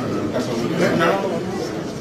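A man speaks up close to another man.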